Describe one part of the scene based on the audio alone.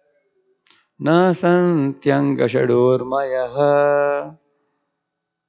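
A man chants in long held notes into a microphone.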